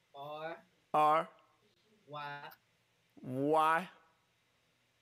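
A man sings short, held notes into a microphone.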